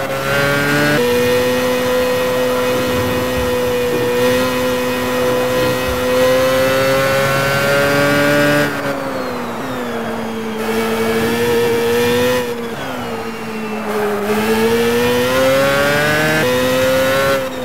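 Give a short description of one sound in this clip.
A single-seater racing car engine screams at high revs.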